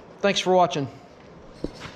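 A man speaks briefly and calmly close to the microphone.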